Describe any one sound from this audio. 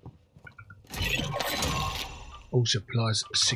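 A supply crate opens with a rattle.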